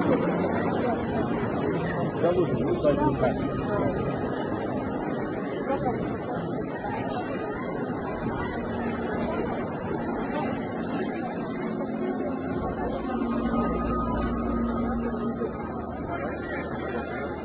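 A large crowd murmurs and calls out in a big echoing hall.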